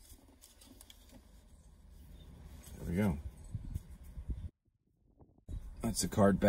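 Playing cards rustle and flick in hands.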